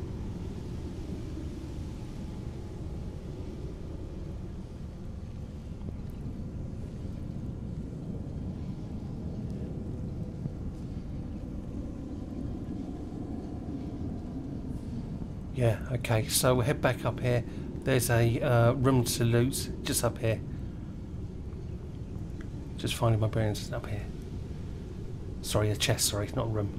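A low, steady hum fills a large echoing hall.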